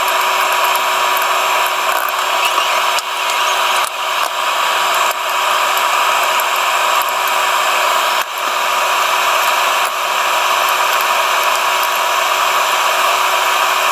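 Metal tongs clink against a pot.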